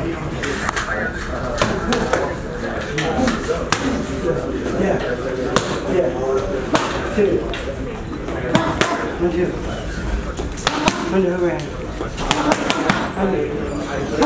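Boxing gloves smack sharply against punch mitts.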